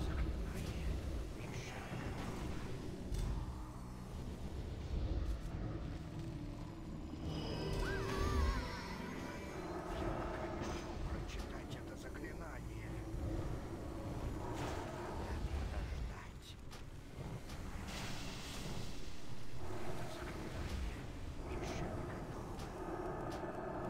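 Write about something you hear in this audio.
Fantasy battle sounds of spells and blows clash and boom throughout.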